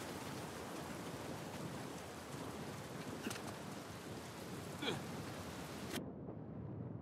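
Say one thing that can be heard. A waterfall rushes and splashes nearby.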